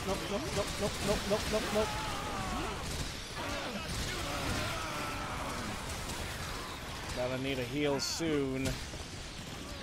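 Giant creatures screech.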